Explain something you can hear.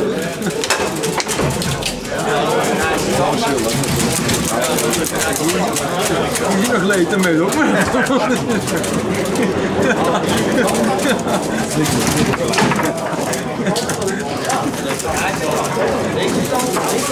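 Several men talk and call out over the game.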